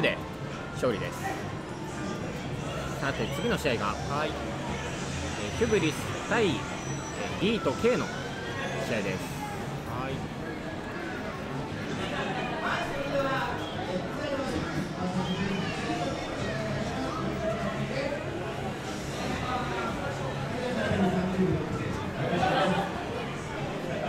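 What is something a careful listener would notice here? A group of young people chatter and shout nearby.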